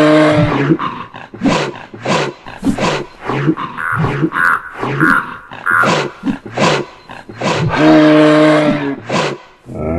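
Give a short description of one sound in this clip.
Heavy blows thud as moose fight.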